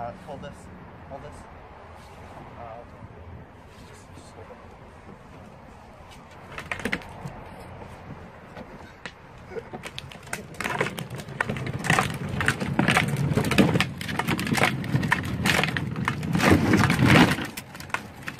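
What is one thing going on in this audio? Plastic wheels rumble and scrape over pavement as a small kart rolls closer.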